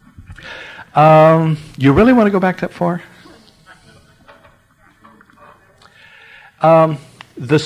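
An elderly man speaks slowly and expressively, with long pauses.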